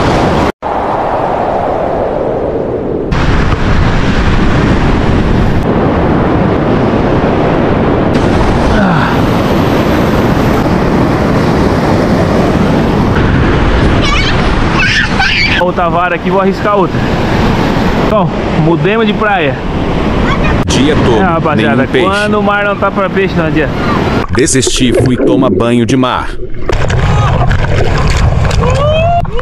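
Ocean waves break on a sandy beach.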